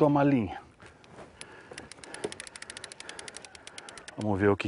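A fishing reel clicks rapidly as line is wound in.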